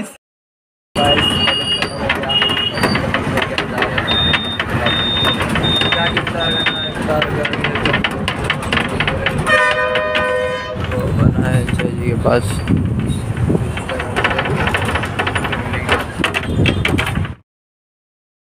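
A bus engine rumbles and rattles while driving.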